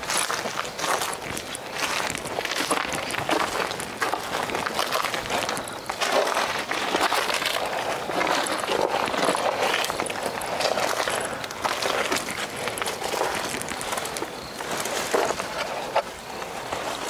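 Leaves and branches rustle as a man pushes through them.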